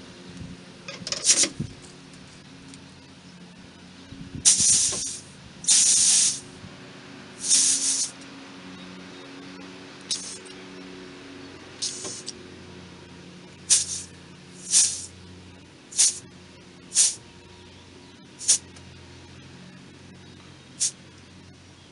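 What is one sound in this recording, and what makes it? Short bursts of air hiss loudly from a hose nozzle.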